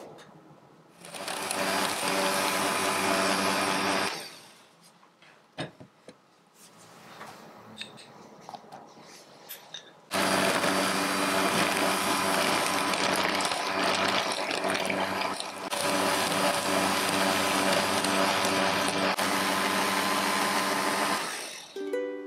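An electric hand mixer whirs steadily as it beats a thick mixture in a glass bowl.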